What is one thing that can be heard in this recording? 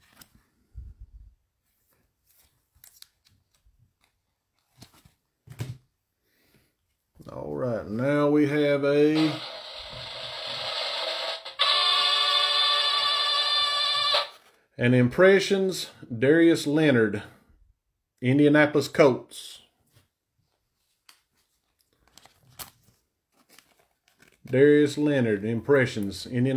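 Trading cards rustle and slide in gloved hands.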